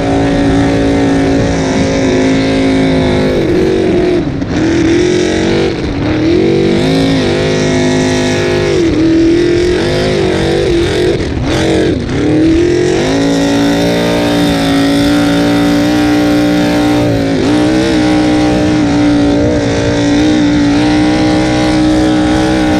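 A powerful boat engine roars loudly up close, its pitch rising and dipping as the boat turns.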